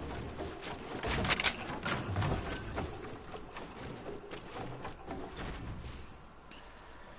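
Game sounds of wood being built knock and clatter in quick bursts.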